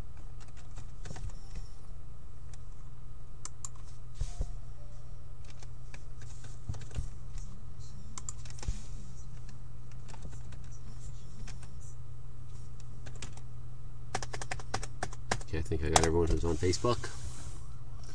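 Cards rustle and tap softly on a table.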